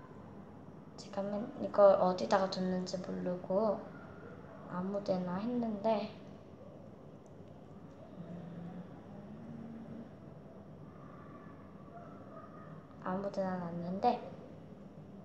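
A young girl talks calmly close by, in short bursts.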